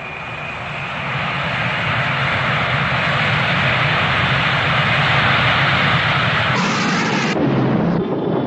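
Jet engines roar loudly as a large aircraft flies low overhead.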